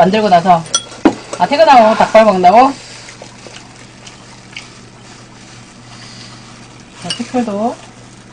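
Chopsticks clink against bowls and a pot.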